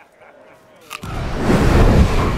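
A man bites into an apple with a crunch.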